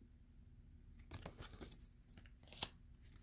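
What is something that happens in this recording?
A playing card rustles and scrapes as it is handled.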